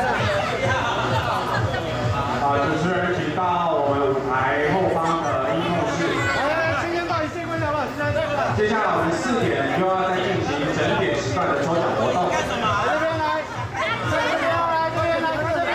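A crowd of men and women chatter and call out close by.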